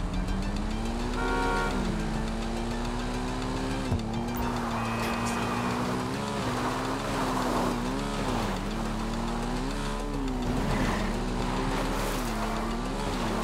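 A motorcycle engine revs up and down, changing gears.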